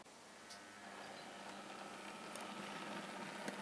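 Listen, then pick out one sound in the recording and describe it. A model diesel railcar hums along model track.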